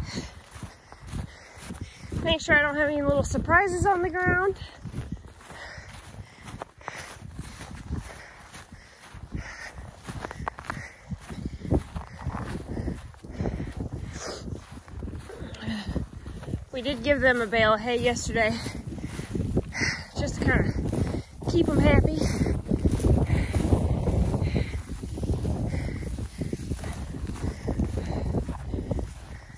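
Wind blows across open ground outdoors.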